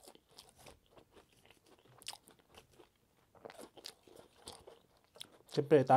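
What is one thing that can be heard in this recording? Fried nuggets rustle and tap as fingers pick them up.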